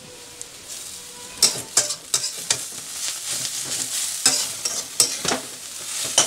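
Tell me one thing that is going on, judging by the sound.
A spatula scrapes and clatters against a metal wok.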